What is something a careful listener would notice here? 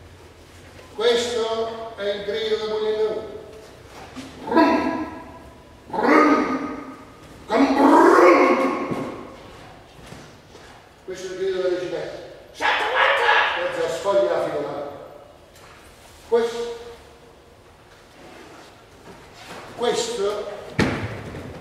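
A man speaks loudly and dramatically in a large echoing hall.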